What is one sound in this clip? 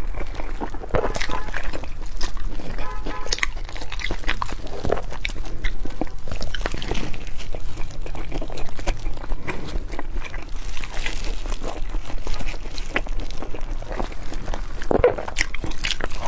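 A young woman chews food wetly and noisily close to a microphone.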